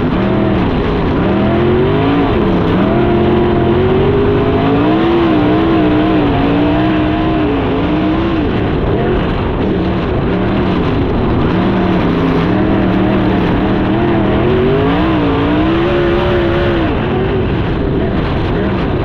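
A race car engine roars loudly up close, revving up and down throughout.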